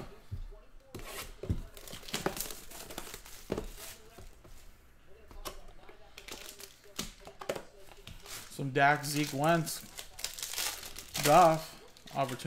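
Plastic wrapping crinkles and tears as a pack is opened.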